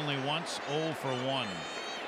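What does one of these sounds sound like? A large crowd murmurs steadily in a big open stadium.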